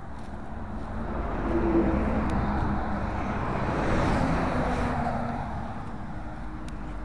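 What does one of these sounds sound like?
A heavy truck rumbles past close by.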